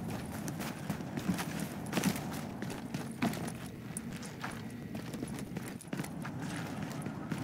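Footsteps crunch steadily on snow and hard floor.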